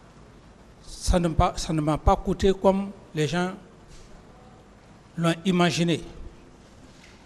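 A man speaks calmly and firmly into a microphone, in short bursts with pauses.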